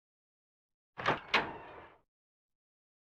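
A door latch clicks and a heavy door swings open.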